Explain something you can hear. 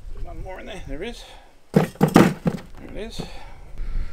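Soil plugs knock into a metal wheelbarrow.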